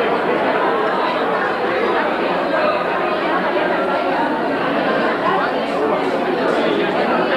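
A crowd of men and women chatter loudly all at once, indoors.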